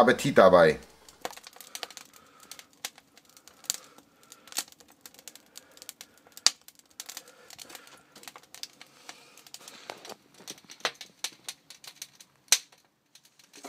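Wood fire crackles and pops.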